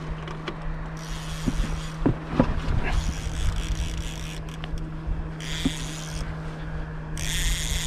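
A fishing reel's drag buzzes in short bursts.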